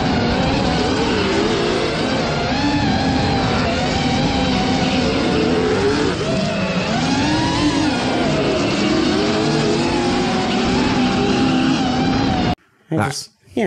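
Car engines scream and rev loudly.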